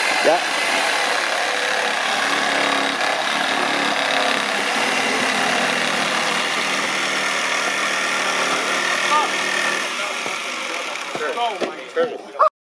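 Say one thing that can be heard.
A power saw buzzes steadily, cutting through wood.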